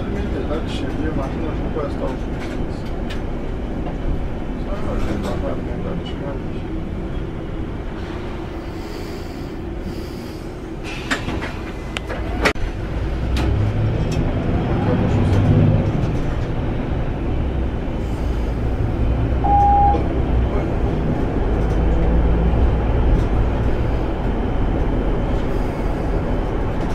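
A bus engine hums and rumbles steadily while driving.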